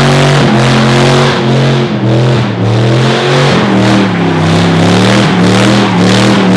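A truck engine roars loudly at high revs.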